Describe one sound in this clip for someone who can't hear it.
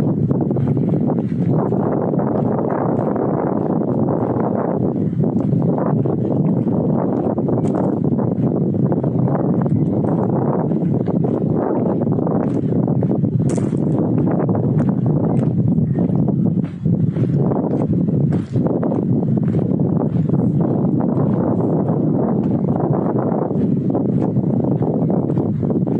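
Strong wind rumbles and buffets outdoors.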